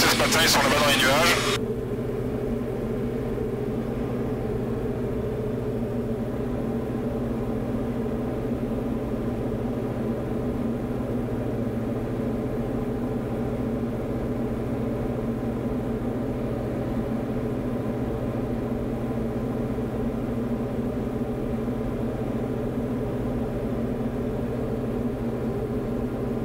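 A small plane's propeller engine drones steadily, heard from inside the cabin.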